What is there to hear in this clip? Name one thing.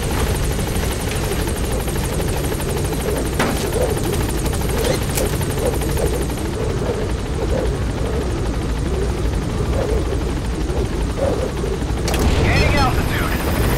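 A helicopter's rotor thumps and roars loudly overhead.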